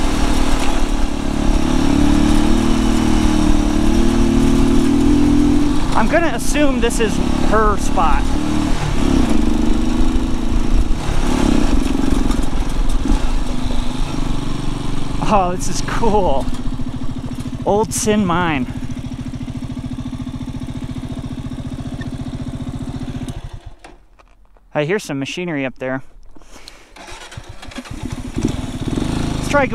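A motorcycle engine rumbles close by as the bike rides along.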